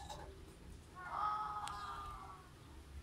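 A cat meows loudly close by.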